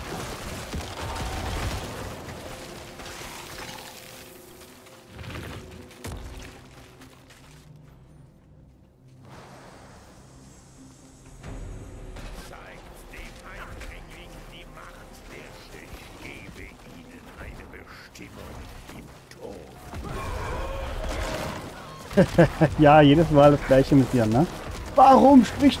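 Game combat sounds clash and thud.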